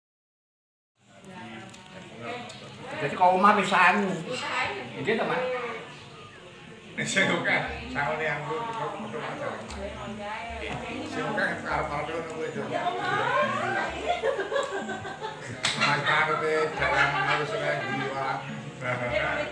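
Middle-aged men talk calmly with one another nearby.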